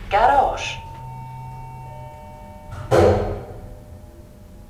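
An elevator chime rings with a few soft tones.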